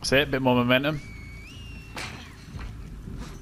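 A person whistles a short rising call.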